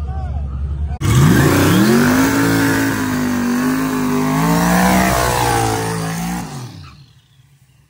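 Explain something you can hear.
Tyres screech as they spin on the track.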